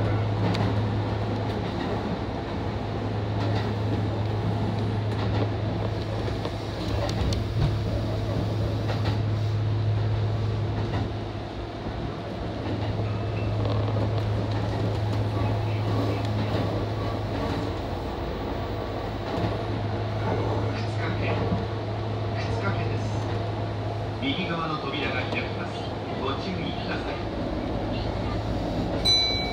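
A train hums steadily as it runs along the tracks.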